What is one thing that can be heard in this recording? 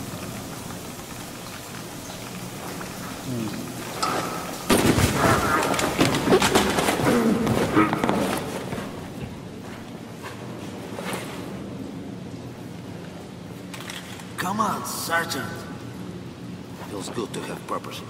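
Water sprays and hisses steadily nearby.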